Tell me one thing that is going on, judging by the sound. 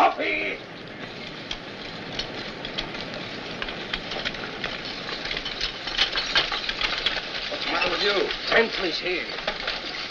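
Horses' hooves clatter on dirt.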